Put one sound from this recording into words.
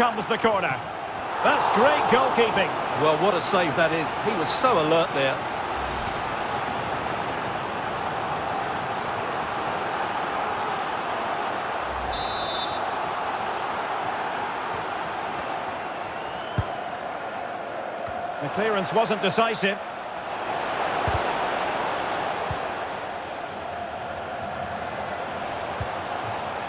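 A large stadium crowd roars and murmurs steadily.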